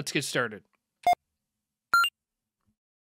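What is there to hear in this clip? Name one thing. A game menu gives short electronic blips as an option is chosen.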